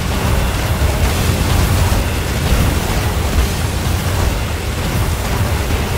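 Water splashes as a fighter runs through shallows.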